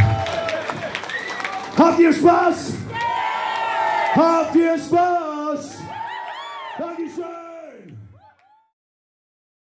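A crowd sings and cheers loudly.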